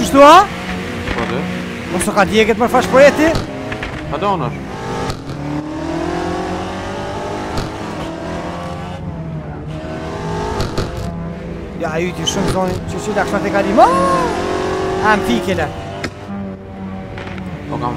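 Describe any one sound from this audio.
A car engine revs up through the gears and hums steadily.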